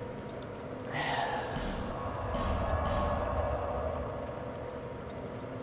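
A deep whoosh swells and fades.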